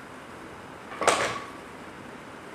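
A metal dumbbell clanks down onto a hard floor.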